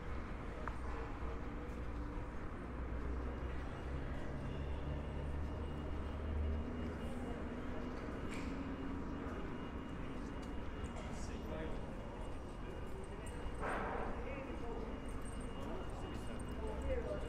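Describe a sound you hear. A quiet pedestrian street hums steadily outdoors.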